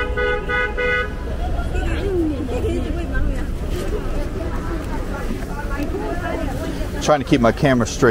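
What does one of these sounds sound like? A busy street crowd chatters all around.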